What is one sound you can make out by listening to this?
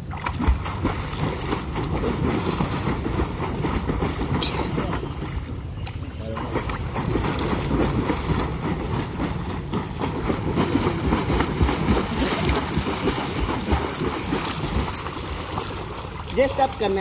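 Water splashes loudly from a swimmer's kicking feet.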